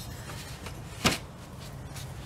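A metal straightedge knocks lightly down onto a board.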